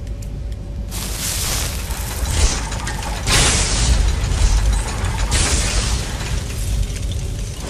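Crackling lightning magic roars and sizzles in bursts.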